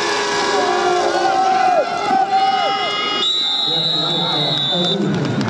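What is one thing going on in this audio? A crowd cheers from the stands outdoors.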